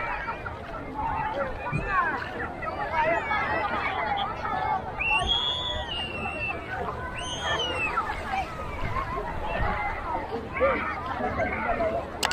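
Many people talk and shout at a distance outdoors.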